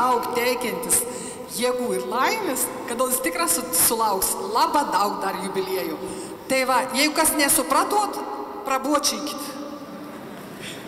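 A woman speaks warmly into a microphone in a large echoing hall.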